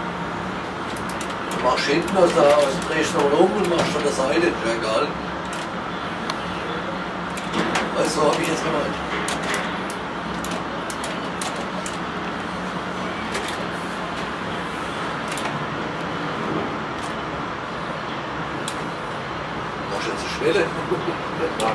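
A squared timber beam rumbles and knocks along a steel roller conveyor.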